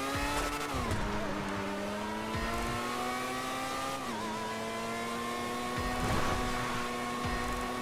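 Tyres skid and rumble over rough ground.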